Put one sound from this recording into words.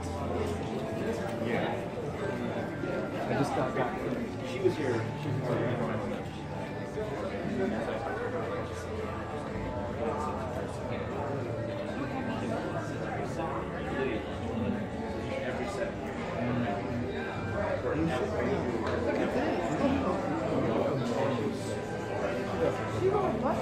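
A crowd of men and women chatters nearby in an echoing room.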